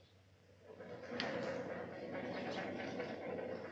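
A fire crackles.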